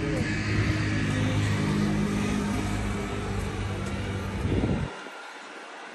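A motor scooter drives past on the street nearby.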